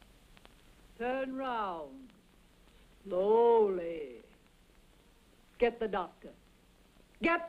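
A young woman speaks nearby in a lilting, playful voice.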